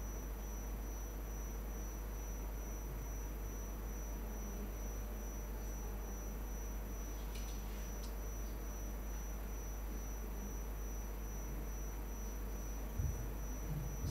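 A young man speaks calmly through a loudspeaker.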